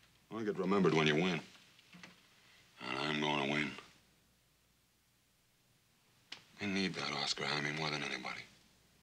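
A man speaks close by in a calm, firm voice.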